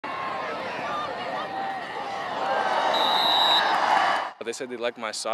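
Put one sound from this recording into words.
A crowd cheers and shouts in the stands outdoors.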